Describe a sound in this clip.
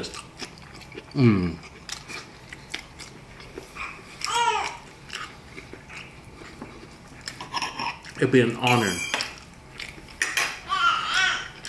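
A young man chews and smacks his lips close to a microphone.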